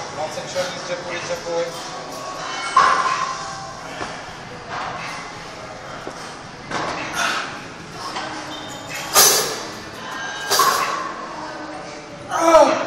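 Metal gym weights clank and echo in a large hall.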